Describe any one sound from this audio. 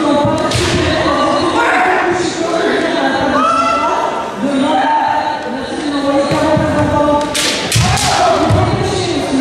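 Men shout loud, drawn-out battle cries in a large echoing hall.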